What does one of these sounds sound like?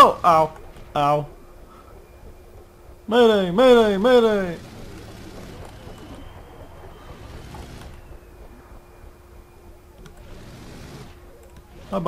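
Propellers whir steadily.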